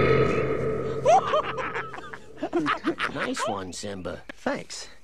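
A young man laughs softly close by.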